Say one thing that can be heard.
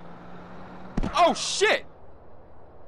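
A car hits a man with a loud thud.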